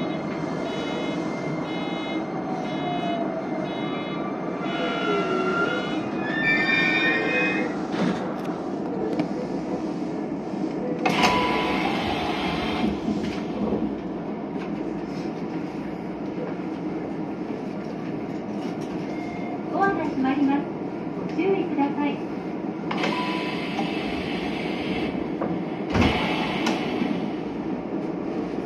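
A train rumbles steadily along the tracks.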